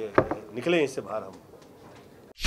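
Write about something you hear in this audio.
A man speaks calmly into microphones.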